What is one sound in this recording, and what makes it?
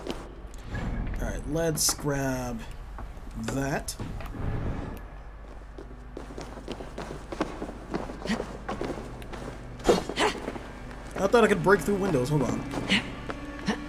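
A young man talks casually and with animation into a close microphone.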